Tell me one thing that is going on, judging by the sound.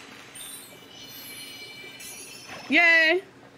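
Bright video game chimes ring and fade.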